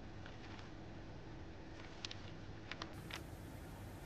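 Paper pages rustle.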